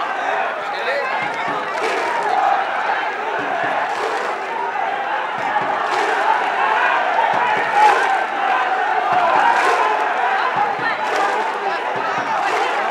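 A large crowd of fans chants and cheers loudly outdoors.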